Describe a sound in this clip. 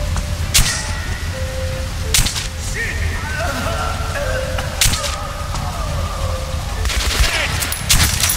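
A pistol fires sharp, loud shots now and then.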